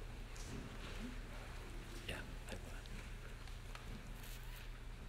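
A woman speaks calmly through a microphone in an echoing room.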